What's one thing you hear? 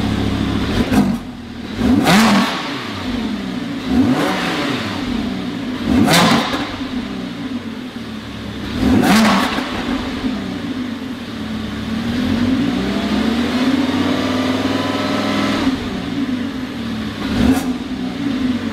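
A sports car engine revs sharply several times.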